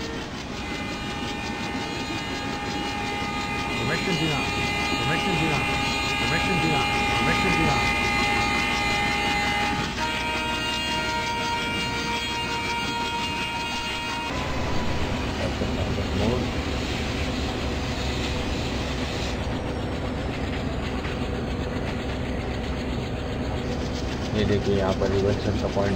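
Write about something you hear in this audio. A diesel locomotive engine rumbles and drones steadily.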